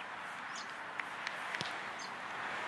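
A football is kicked with a dull thud.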